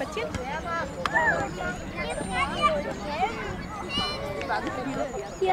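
Children shout and call out nearby outdoors.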